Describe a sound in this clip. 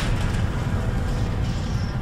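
Sparks crackle and fizz overhead.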